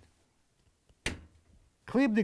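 A plastic wire connector snaps apart.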